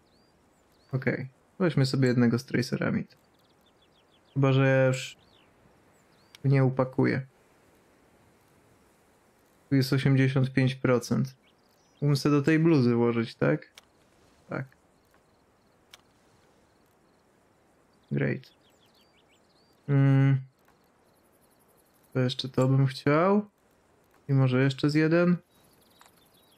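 A young man talks calmly into a close microphone, in short bursts with pauses.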